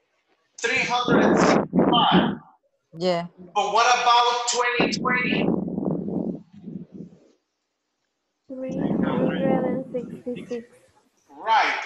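A man speaks with animation through an online call, with pauses.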